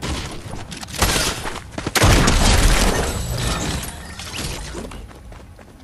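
A pickaxe strikes a wall with loud thuds.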